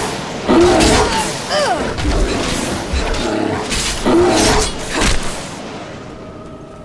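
A large bear roars and growls.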